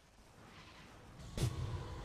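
Magic spell effects crackle and whoosh in a fight.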